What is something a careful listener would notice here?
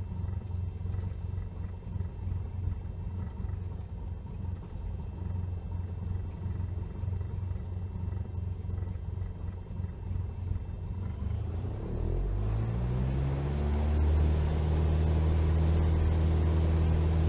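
A small propeller plane's engine idles with a low rumble, then revs up loudly and steadily.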